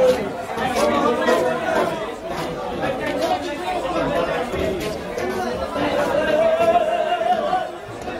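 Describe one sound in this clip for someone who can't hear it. A knife scrapes scales off a large fish.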